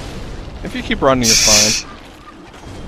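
Flames burst with a roaring whoosh.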